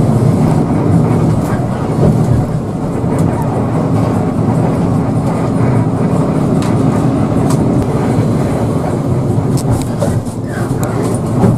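A heavy diesel engine rumbles steadily inside a moving bus.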